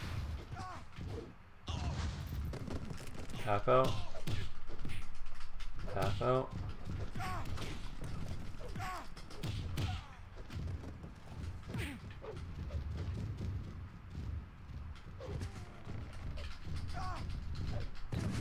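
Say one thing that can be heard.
Bodies thud heavily onto a springy ring mat.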